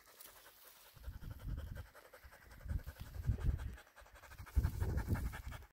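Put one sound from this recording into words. A dog pants quickly close by.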